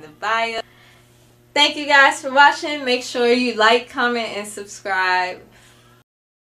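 A young woman speaks cheerfully and close to a microphone.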